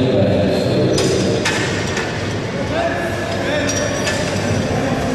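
Heavy metal weight plates clank as they are slid onto a barbell.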